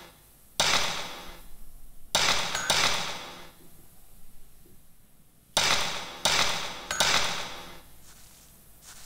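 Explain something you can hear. Electronic menu chimes ring out in short bursts, each fading with a shimmer.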